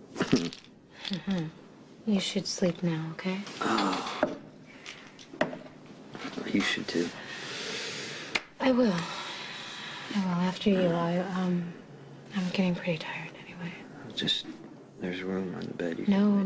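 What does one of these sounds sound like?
A young man speaks softly and weakly, close by.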